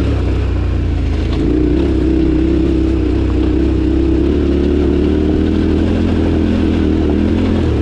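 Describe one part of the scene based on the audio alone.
A motorbike engine hums steadily, rising slightly in pitch as it speeds up.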